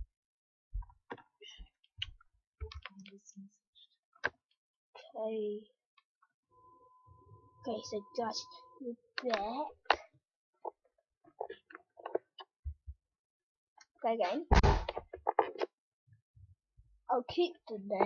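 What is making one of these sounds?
A young boy talks casually, close to a computer microphone.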